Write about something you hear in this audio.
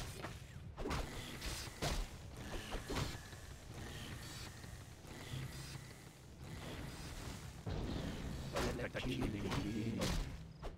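Swords clash and spells crackle in a game battle.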